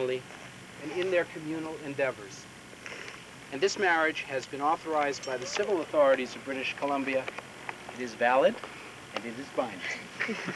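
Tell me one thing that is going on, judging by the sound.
A man reads out calmly outdoors.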